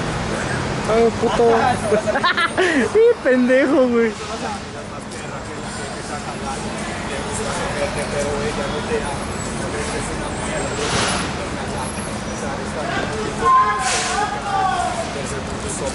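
A man talks nearby outdoors.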